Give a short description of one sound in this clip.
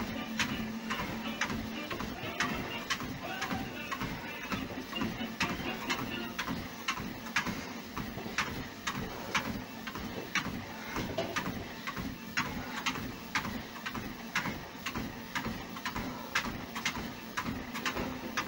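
Feet pound steadily on a running treadmill belt.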